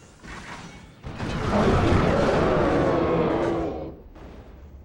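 A loud explosion booms in a video game.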